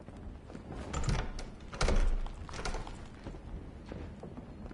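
A metal door handle rattles as it is pulled.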